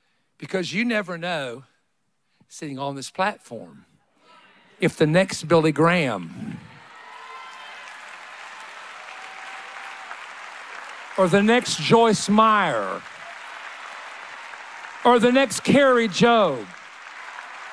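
A man speaks with animation through a microphone to an audience in a large hall.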